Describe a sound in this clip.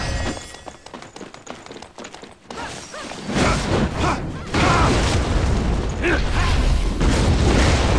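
Fiery spell blasts roar and crackle.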